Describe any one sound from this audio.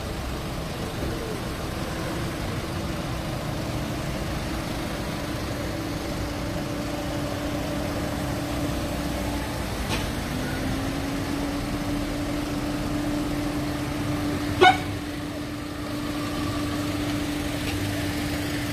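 Vehicle engines rumble as a convoy of cars drives past.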